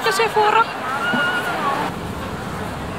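A crowd of people murmurs on a busy street.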